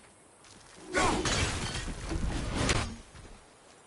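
An axe whooshes through the air and strikes with a heavy thud.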